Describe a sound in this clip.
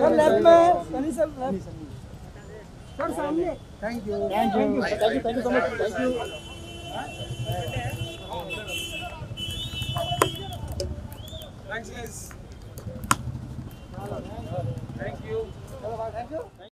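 Several men talk over one another close by, loud and excited.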